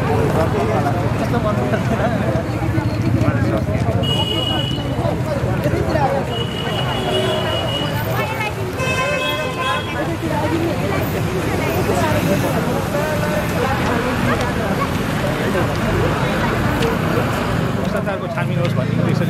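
A crowd chants slogans together outdoors.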